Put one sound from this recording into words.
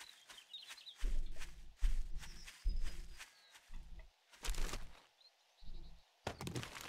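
Footsteps thud and rustle through grass.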